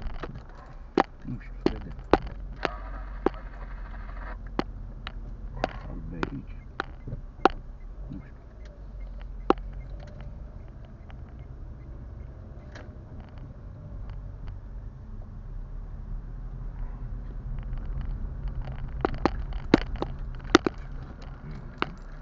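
A car's interior rattles and knocks sharply as it drives over bumps.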